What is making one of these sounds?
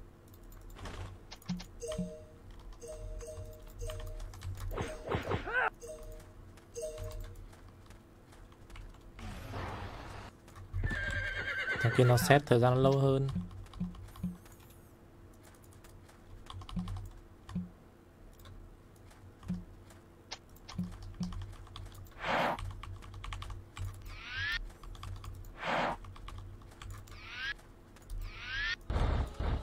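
Game sound effects chime and swoosh.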